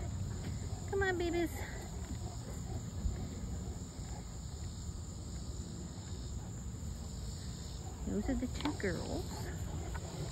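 Puppies yip and whine close by.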